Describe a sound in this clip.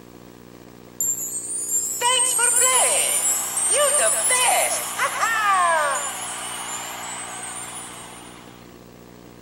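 A game's closing jingle plays brightly through a small loudspeaker, then fades.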